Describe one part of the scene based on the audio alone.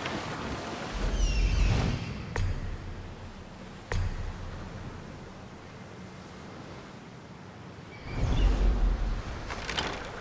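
A body plunges into water with a heavy splash.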